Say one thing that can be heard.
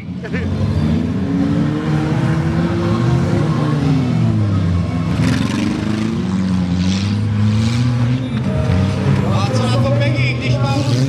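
Car engines roar and rev loudly outdoors.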